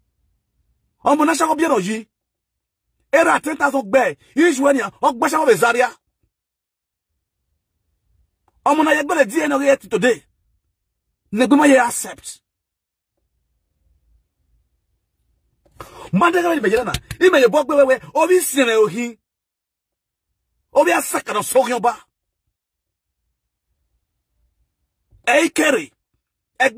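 A man speaks with animation close to a microphone, in short bursts with silent pauses.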